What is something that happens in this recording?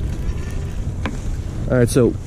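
A small fish slaps onto wooden boards.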